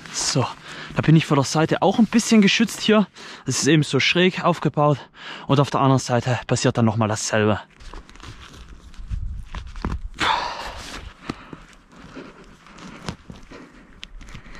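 A tarp rustles and crinkles as it is handled.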